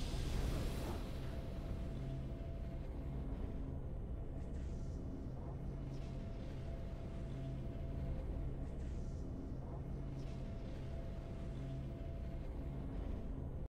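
Soft triumphant music plays.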